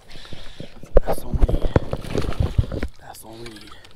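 A hooked largemouth bass thrashes and splashes at the water's surface.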